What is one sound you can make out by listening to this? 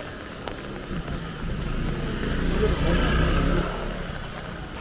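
A motor scooter passes close by with a buzzing engine.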